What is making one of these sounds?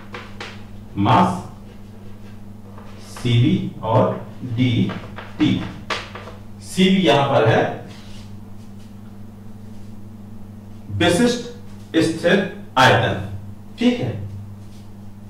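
A man speaks in short bursts, explaining calmly nearby.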